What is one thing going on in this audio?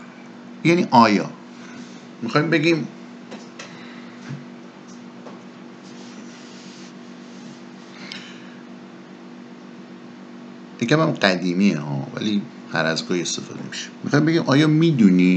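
A man speaks calmly and closely into a microphone, pausing between phrases.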